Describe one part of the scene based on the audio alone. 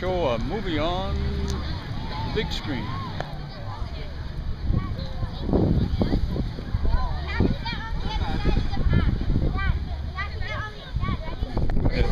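A crowd of people chatters outdoors, with children and adults talking and calling.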